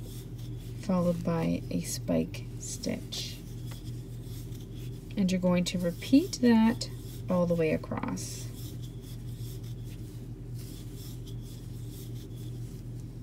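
Yarn rustles softly as a crochet hook pulls it through stitches.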